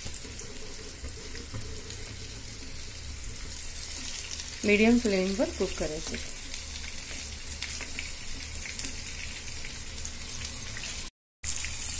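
Oil sizzles and crackles steadily in a frying pan.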